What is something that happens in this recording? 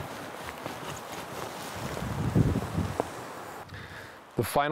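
Boots tread and scuff on soft soil.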